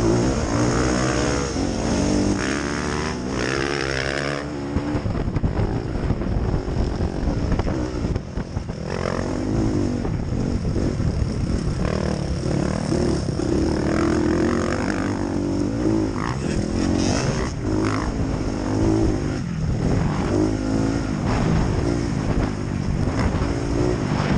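A motocross bike engine revs loudly up close, rising and falling.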